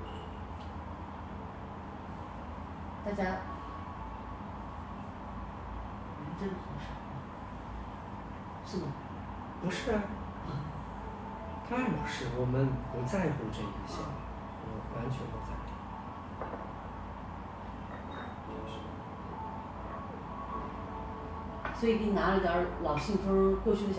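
Ceramic cups and a teapot clink on a tray.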